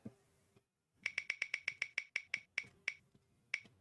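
A wheel spins with rapid ticking clicks that slow down.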